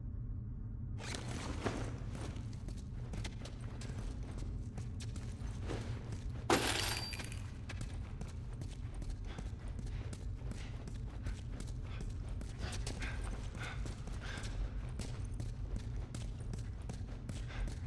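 Footsteps shuffle slowly across a hard floor.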